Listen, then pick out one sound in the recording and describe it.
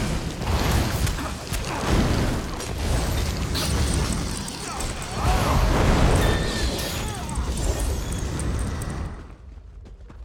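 Magic blasts crackle and roar in a fight.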